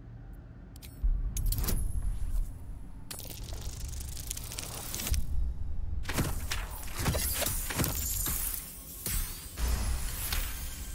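A die rattles and tumbles as it rolls.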